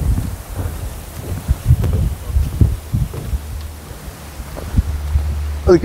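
Footsteps thud on a metal walkway.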